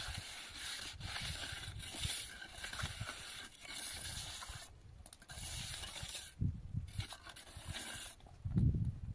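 A trowel scrapes wet plaster onto a rough surface.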